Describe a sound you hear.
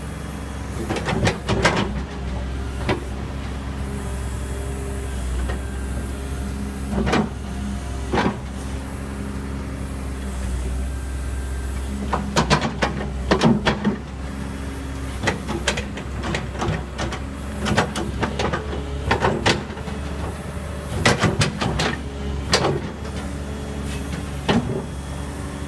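A metal bucket clanks and knocks against metal.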